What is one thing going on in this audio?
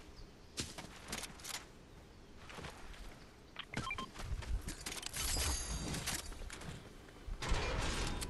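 Footsteps crunch quickly on gravel and grass.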